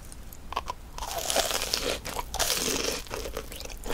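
A woman bites into a crispy fried cheese ball close to a microphone.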